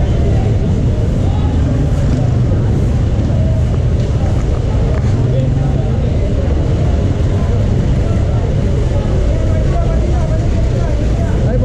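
Street traffic rumbles steadily.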